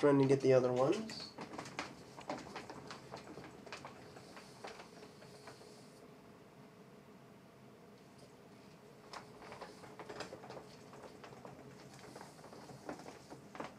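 Wheelchair wheels roll and creak across a wooden floor.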